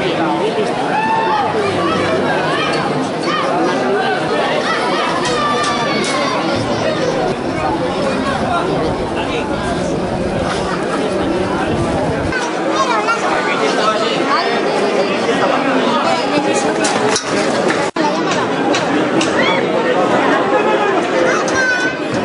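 A crowd of men and women shouts and cheers loudly outdoors.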